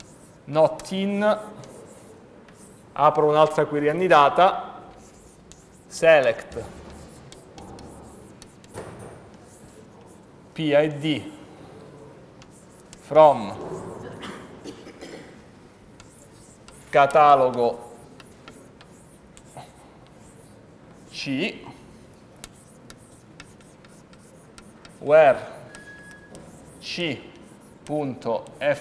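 A man speaks in short bursts, lecturing.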